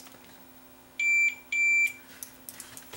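A multimeter gives two short, high beeps.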